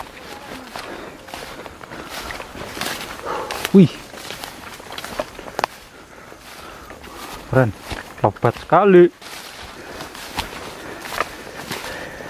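Footsteps rustle and crunch through tall grass and brush.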